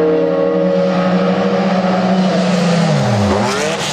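A race car speeds past and its engine pitch drops.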